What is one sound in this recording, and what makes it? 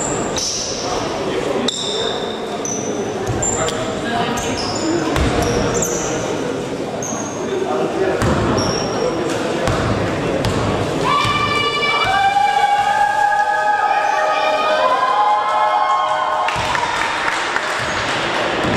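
Spectators murmur and call out in a large echoing hall.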